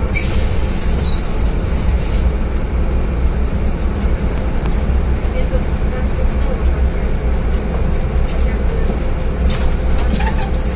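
The bus interior rattles as it drives along the road.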